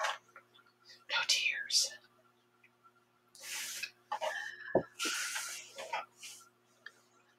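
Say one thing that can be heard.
Cloth rustles softly as hands smooth and fold it.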